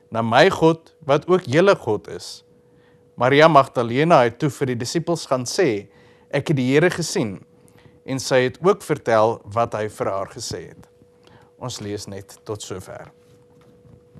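A man reads aloud calmly and expressively, close to a microphone.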